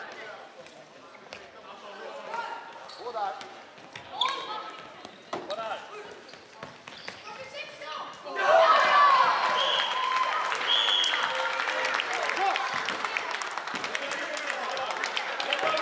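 Plastic sticks clack against a ball and each other in a large echoing hall.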